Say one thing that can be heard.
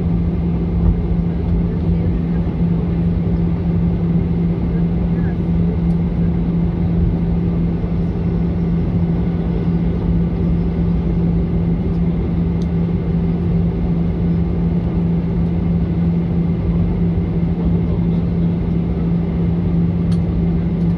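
Jet engines hum steadily from inside a taxiing plane's cabin.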